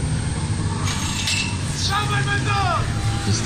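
A metal start gate drops with a clatter.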